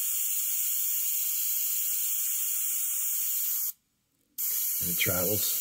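An airbrush hisses steadily in short bursts.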